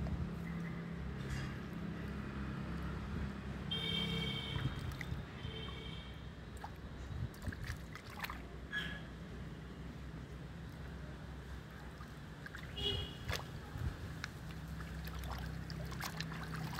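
Water splashes and trickles as hands work in a basin.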